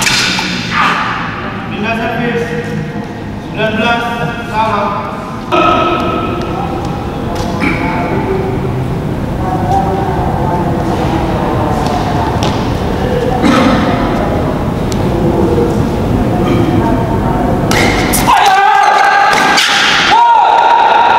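A shuttlecock is struck sharply with rackets.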